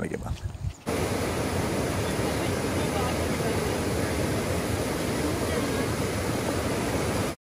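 A swollen river rushes loudly over rocks.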